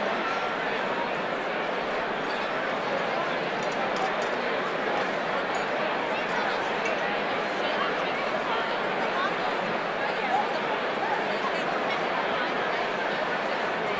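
A large crowd of men and women chatters loudly in a big echoing hall.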